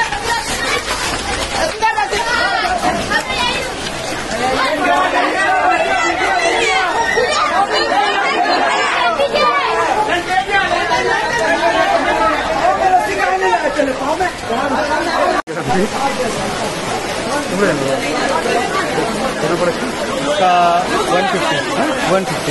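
A crowd of men shout and talk excitedly outdoors.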